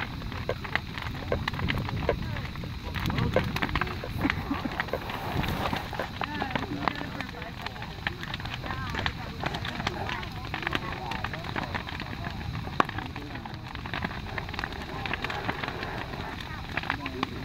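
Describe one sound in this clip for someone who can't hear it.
A large bonfire roars outdoors.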